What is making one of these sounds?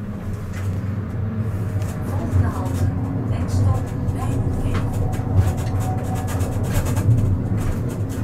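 Tram wheels click and squeal over rail joints and a curve.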